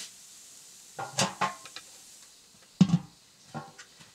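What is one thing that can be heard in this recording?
A metal lid clanks onto a wok.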